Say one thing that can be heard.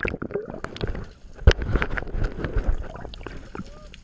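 Bubbles rush and burble underwater.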